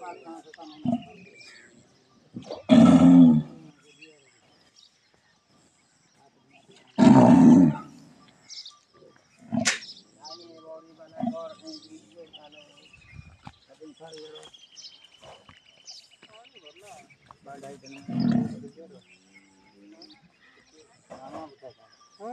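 A cow tears and munches grass close by.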